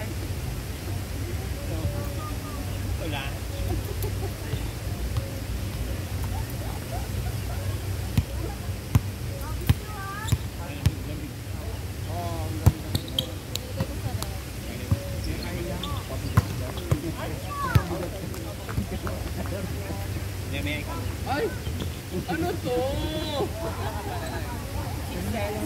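Young men and women call out and shout to each other outdoors.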